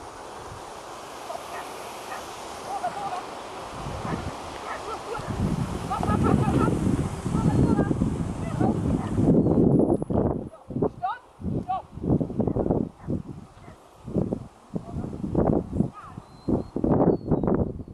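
A woman calls out commands to a dog with animation.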